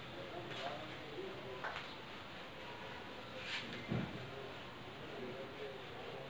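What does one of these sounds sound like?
An eraser rubs across a whiteboard.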